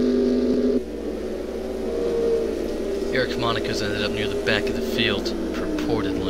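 Other race car engines roar as the cars pass close by.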